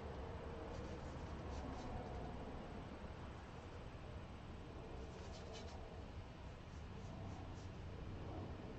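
A paintbrush brushes softly across a canvas.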